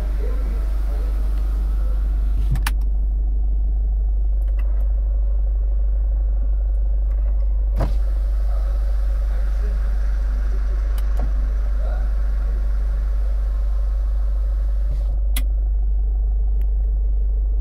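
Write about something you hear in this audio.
A car engine idles with a steady low rumble, heard from inside the car.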